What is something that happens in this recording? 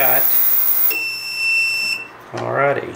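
An ultrasonic cleaner beeps several times as its timer ends.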